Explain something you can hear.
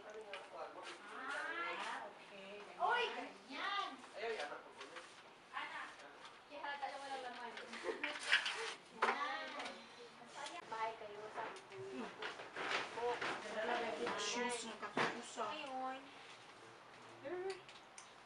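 Young women chat with animation close by.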